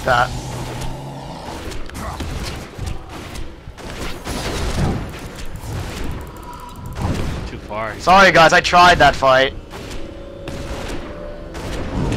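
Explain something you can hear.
Blows and magic strikes thud and crackle in a fight.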